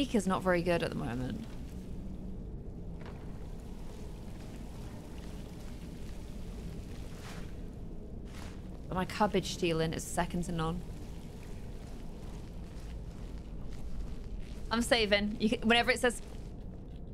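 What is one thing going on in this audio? A young woman speaks casually into a close microphone, in short bursts.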